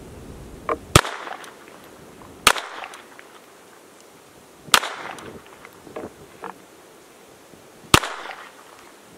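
A rifle fires several sharp shots outdoors, each echoing briefly.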